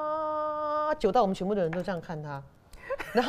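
A woman talks animatedly close to a microphone.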